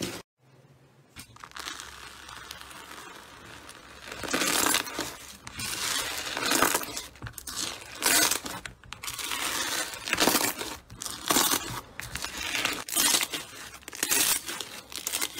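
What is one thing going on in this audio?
Fingers knead crunchy bead-filled slime, which crackles and pops.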